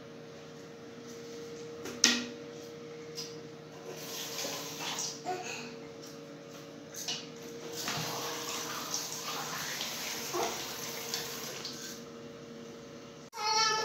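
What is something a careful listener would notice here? A toothbrush scrubs against teeth.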